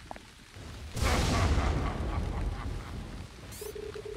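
Thunder cracks loudly and rumbles away.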